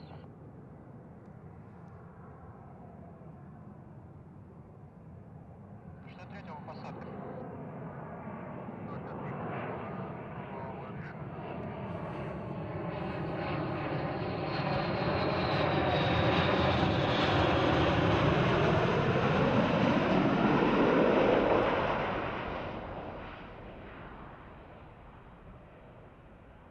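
A jet engine roars loudly, growing louder as the jet comes closer and then fading away.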